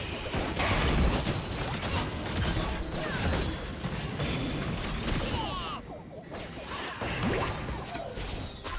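Magic blasts and hits burst and crackle in a fast game fight.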